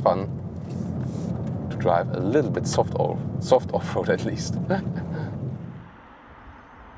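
A car engine hums low and steady inside the cabin.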